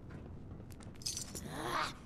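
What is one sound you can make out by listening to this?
A plant is plucked with a short rustle.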